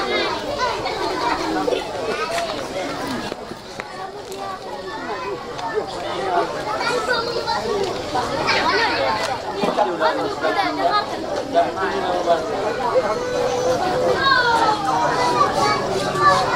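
A crowd of men and women chatter and call out close by.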